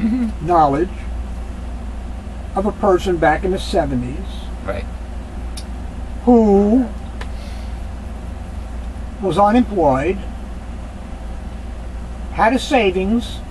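A middle-aged man speaks calmly in short phrases close to a microphone.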